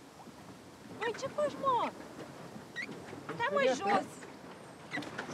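A man shouts across the water.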